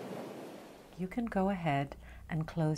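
A woman speaks with animation, close to a microphone.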